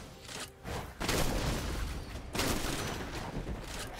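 Magic spells whoosh and burst in a fast fight.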